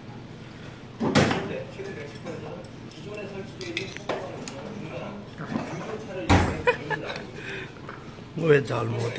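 Metal chopsticks clink against dishes.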